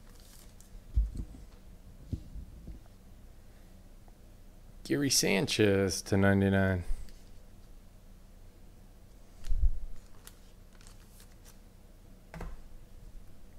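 Trading cards slide and tap against a stack of cards.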